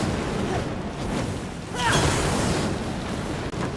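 A sword whooshes through the air with a fiery roar.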